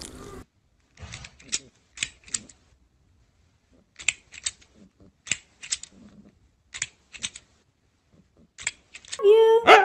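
A plastic toy clicks as a cat bats it.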